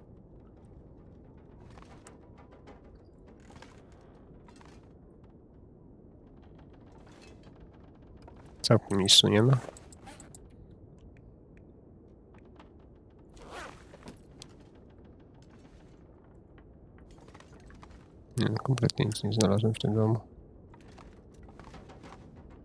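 Footsteps creak on wooden floorboards.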